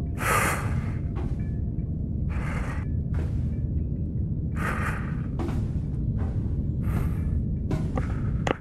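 A lightsaber hums with a low, steady drone.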